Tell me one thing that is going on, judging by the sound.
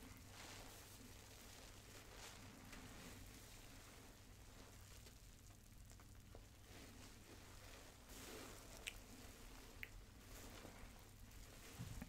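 Bath foam crackles and rustles between hands close to a microphone.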